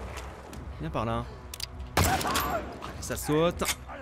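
A pistol fires with a loud bang in an echoing space.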